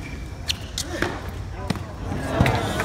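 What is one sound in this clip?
A tennis ball is struck with sharp pops.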